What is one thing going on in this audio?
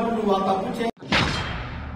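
A man speaks forcefully.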